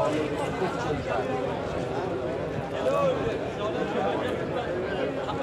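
A crowd of men chatter all around outdoors.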